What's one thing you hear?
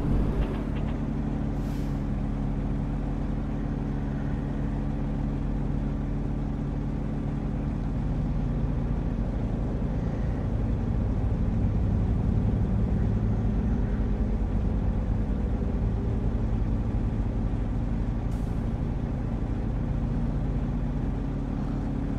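A truck's diesel engine rumbles steadily and grows louder as it speeds up.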